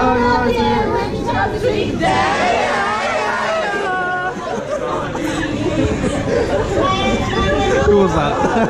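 A crowd of young people chatters and cheers loudly indoors.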